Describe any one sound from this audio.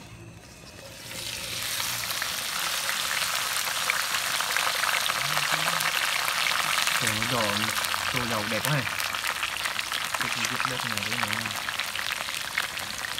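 Insects sizzle and crackle as they fry in hot oil.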